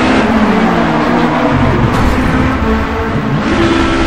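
A car slams into a wall with a heavy thud.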